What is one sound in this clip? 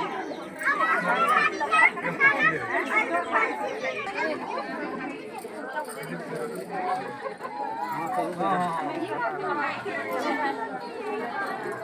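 A crowd of women and children chatter loudly close by.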